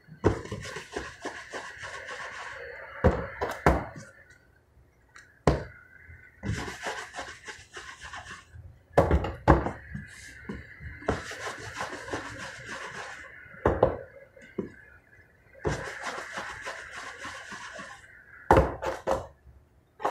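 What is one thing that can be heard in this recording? Hands knead and slap soft dough.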